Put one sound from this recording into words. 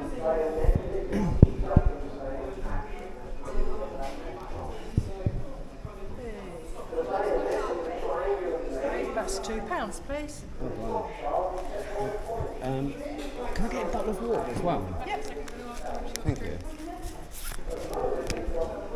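A middle-aged woman talks calmly and cheerfully up close.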